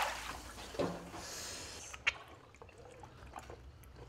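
Wet pulp squelches in hands.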